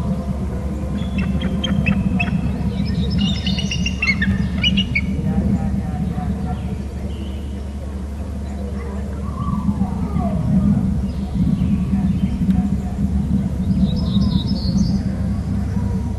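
An eagle chirps in short, high piping calls.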